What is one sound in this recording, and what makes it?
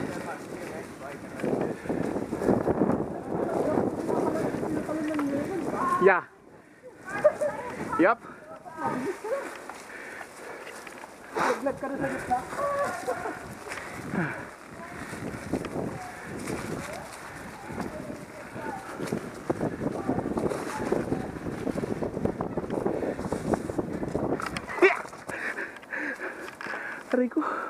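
Bicycle tyres crunch over dry leaves and dirt on a bumpy trail.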